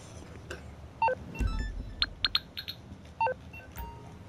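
A short electronic alert chimes several times.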